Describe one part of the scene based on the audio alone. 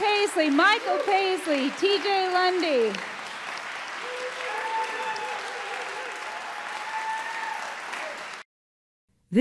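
Acoustic string instruments play on stage.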